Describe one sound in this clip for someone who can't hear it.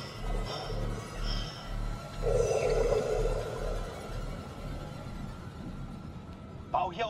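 Air bubbles gurgle and rise through water.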